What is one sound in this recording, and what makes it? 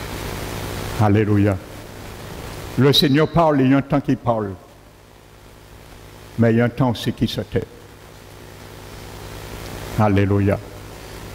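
A middle-aged man speaks calmly through a headset microphone, in short phrases with pauses.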